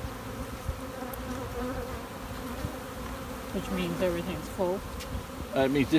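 Bees buzz steadily in a dense swarm close by.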